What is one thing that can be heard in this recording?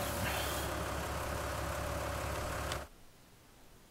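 A tractor engine rumbles steadily, then cuts off.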